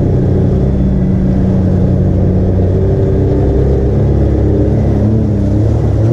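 An off-road vehicle's engine roars steadily up close.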